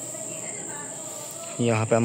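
A broom sweeps across a stone floor.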